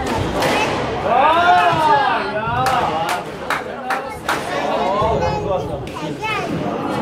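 A woman talks in an echoing court.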